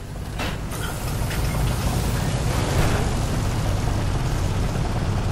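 A large machine rumbles as it powers up.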